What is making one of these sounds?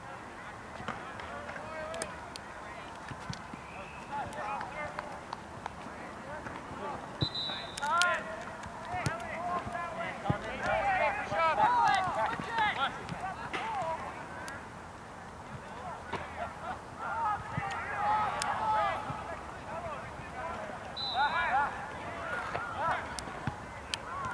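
Young men shout to each other in the distance, outdoors across an open field.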